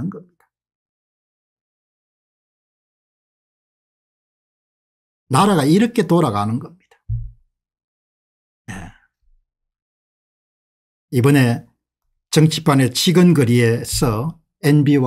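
An older man speaks calmly and clearly into a close microphone, with pauses.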